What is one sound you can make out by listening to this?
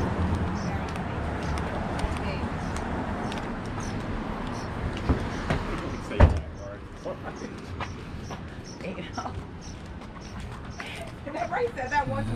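Footsteps tap steadily on a pavement outdoors.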